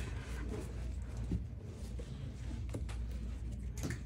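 A playing card is set down softly on a cloth mat.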